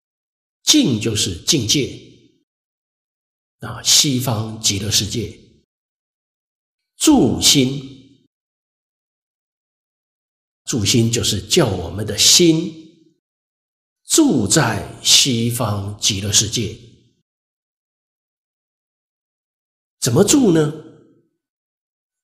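A middle-aged man speaks calmly and slowly into a microphone, in short phrases with pauses.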